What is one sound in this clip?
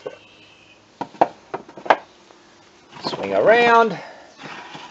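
A wooden box knocks and scrapes against brick as it is moved by hand.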